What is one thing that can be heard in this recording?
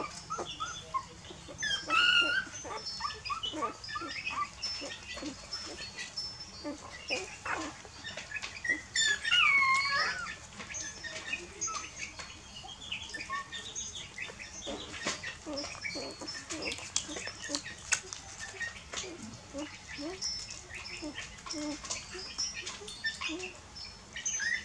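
Puppies whimper and squeal.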